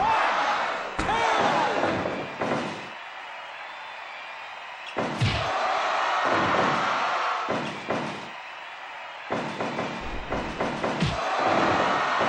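A heavy thud of a body hitting a mat.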